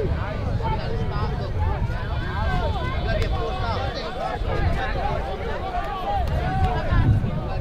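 Many young girls chatter and call out together close by.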